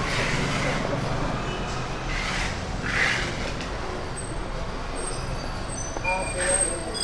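A knife slices through soft food and taps a wooden board.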